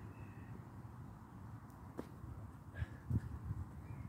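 A man's feet thump onto the ground.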